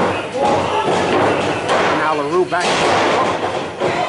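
A body slams onto a wrestling ring mat with a thud.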